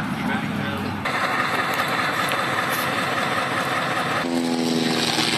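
A tank engine rumbles and clanks.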